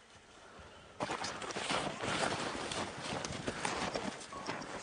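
Boots crunch through deep snow.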